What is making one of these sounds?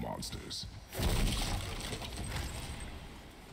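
A wooden chest bursts open with a loud crash.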